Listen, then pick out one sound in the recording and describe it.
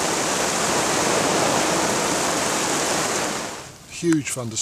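Heavy rain pours down outdoors with a steady hiss.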